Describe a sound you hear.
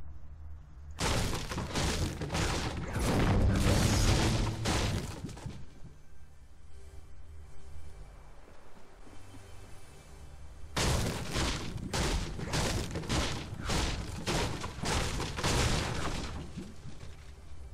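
A pickaxe strikes wood and stone again and again.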